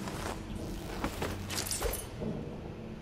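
A short scuffle thumps and rustles up close.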